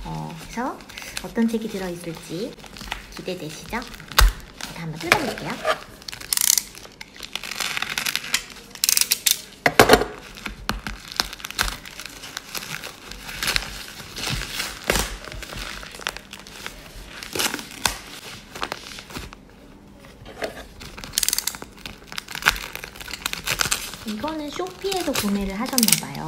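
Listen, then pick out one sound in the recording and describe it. Plastic packaging crinkles and rustles as it is torn open.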